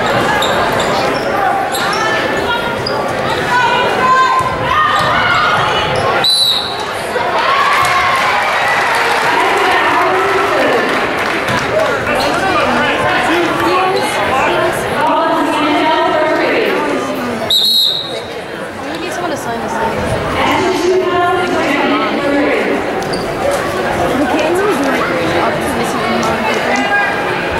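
A crowd of spectators talks and cheers in a large echoing gym.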